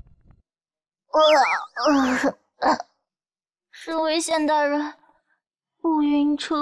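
A young woman speaks with animation and close.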